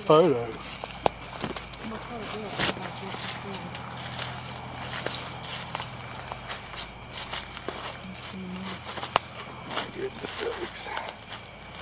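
Leaves and brush rustle close by as someone pushes through undergrowth.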